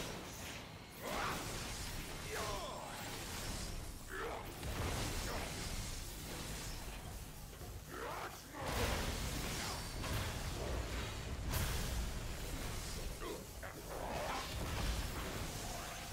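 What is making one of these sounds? Heavy blows thud and clash.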